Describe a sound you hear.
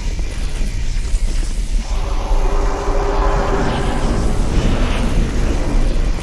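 A lightning bolt crackles and hums.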